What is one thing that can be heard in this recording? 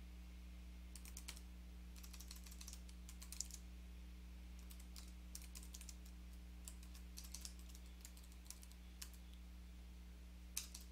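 Keys on a keyboard click in quick bursts of typing.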